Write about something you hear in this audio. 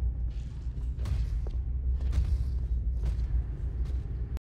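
Footsteps thud quickly across a metal floor.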